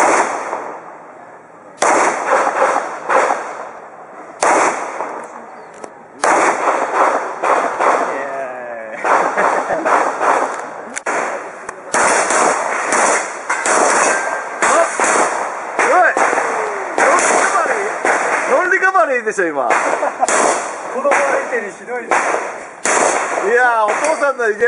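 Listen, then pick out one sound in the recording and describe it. Pistol shots ring out one after another outdoors, with echoes.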